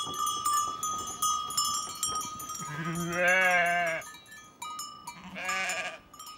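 Sheep hooves shuffle on the ground.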